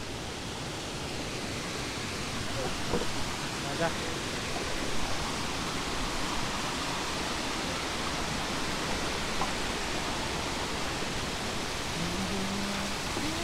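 Water rushes steadily over rocks nearby.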